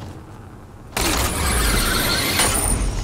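A loud rushing whoosh sounds as a figure is pulled swiftly upward along a line.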